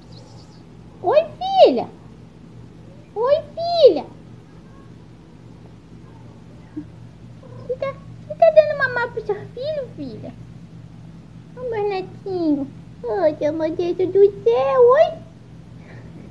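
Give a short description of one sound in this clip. A kitten meows loudly in high, rising and falling cries.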